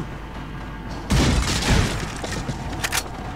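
A wooden crate smashes and splinters.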